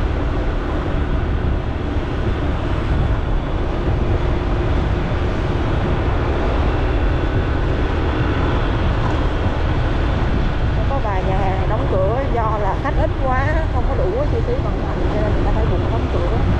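A motorbike engine hums steadily while riding.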